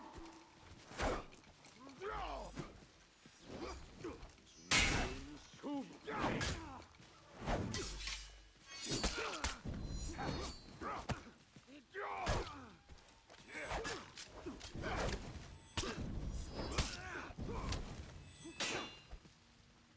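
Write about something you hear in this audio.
Metal weapons clash and clang repeatedly.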